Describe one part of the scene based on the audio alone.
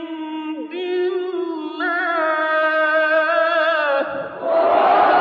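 A man chants in a long, drawn-out melodic voice, heard through a microphone.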